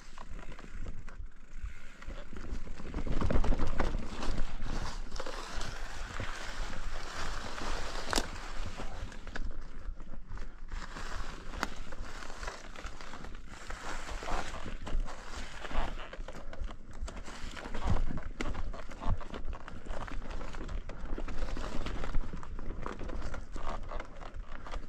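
Bicycle tyres crunch and rumble over dry leaves and rocks.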